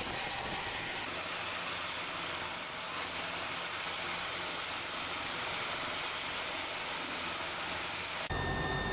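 A helicopter's rotor whirs steadily nearby.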